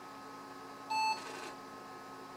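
A computer gives a short electronic beep.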